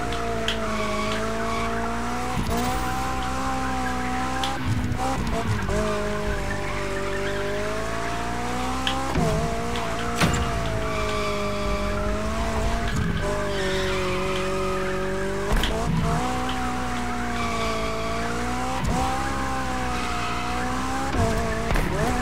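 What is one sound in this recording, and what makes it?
Tyres squeal as a car drifts around bends.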